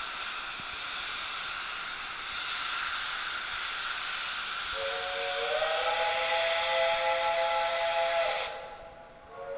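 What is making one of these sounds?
A steam locomotive chuffs hard and steadily.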